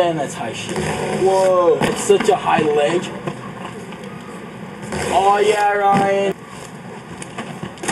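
Skateboard wheels clatter as a skater lands.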